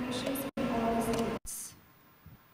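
A young woman reads out through a microphone in a large echoing hall.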